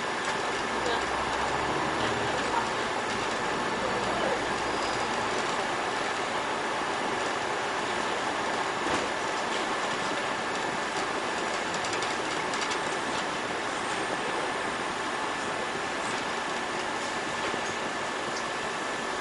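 A city bus drives along a street.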